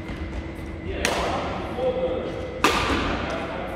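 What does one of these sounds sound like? A racket strikes a shuttlecock with a sharp crack.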